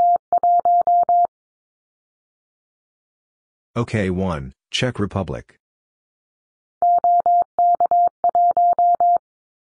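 A telegraph key taps out Morse code in quick, steady beeps.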